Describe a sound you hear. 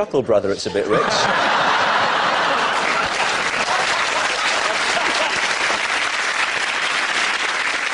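A studio audience laughs and applauds loudly.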